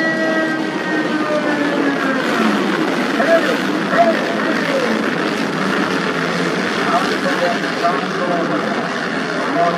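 Dirt bike engines rev up and down as riders pull away.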